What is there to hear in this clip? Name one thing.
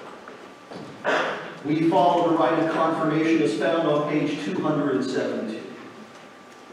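A man speaks in an echoing hall, heard through a microphone.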